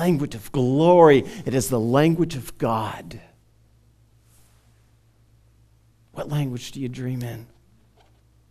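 A man preaches with passion through a headset microphone.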